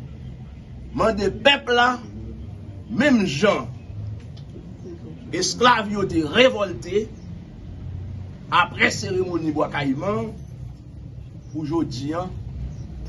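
A middle-aged man speaks forcefully into microphones in bursts, with pauses between phrases.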